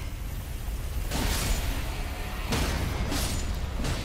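A sword clashes against bones.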